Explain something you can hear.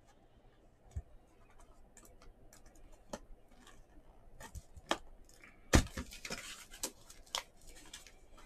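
Fingers tap and knock against a cardboard box.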